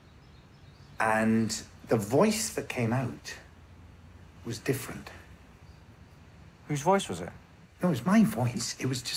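A second man talks calmly over an online call.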